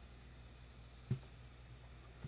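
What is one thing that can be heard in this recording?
A plastic cap pops off a glue stick.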